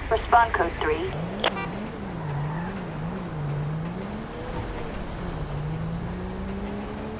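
A police siren wails in a rising and falling pattern.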